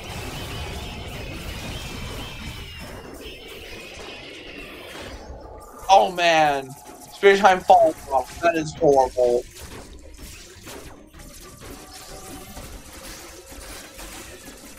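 Video game blasts and rumbles sound steadily.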